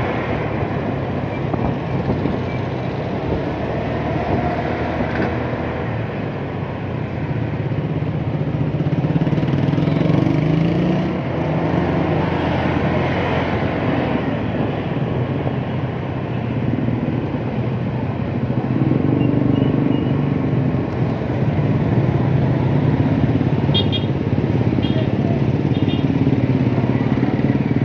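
A motorcycle engine hums steadily close by while riding.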